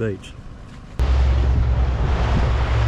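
A boat engine rumbles steadily out on open water.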